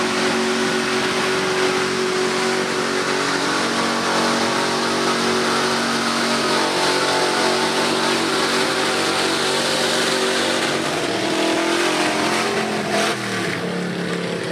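A truck engine roars loudly and steadily under heavy strain, outdoors.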